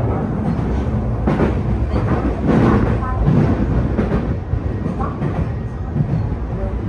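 A train's rumble echoes louder through a tunnel.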